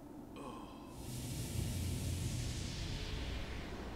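A deep rushing roar swells up and lingers.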